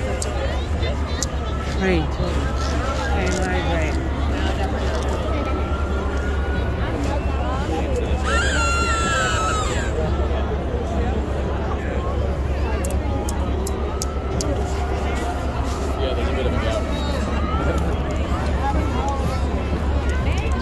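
A crowd of people chatters and cheers all around outdoors.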